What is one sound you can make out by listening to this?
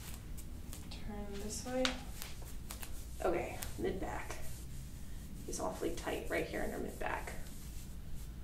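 A woman speaks calmly nearby, explaining.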